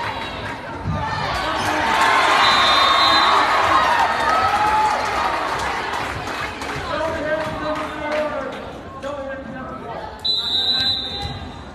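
A crowd cheers and shouts loudly in a large echoing gym.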